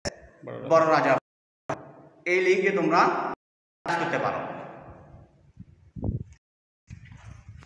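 A middle-aged man speaks calmly and clearly, close by, in an echoing room.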